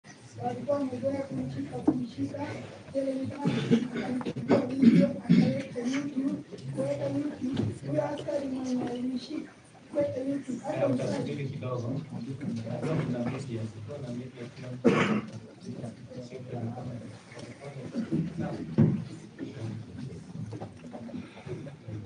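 A man speaks calmly in an echoing room.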